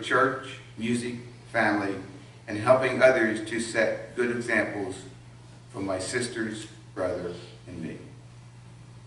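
An older man reads out calmly through a microphone.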